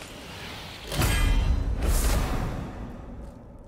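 A heavy blow smashes open a wooden lid with a loud crash.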